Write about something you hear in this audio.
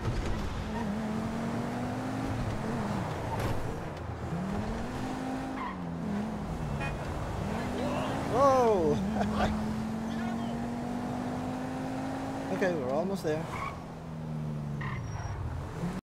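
A car engine hums and revs up and down as it shifts gears.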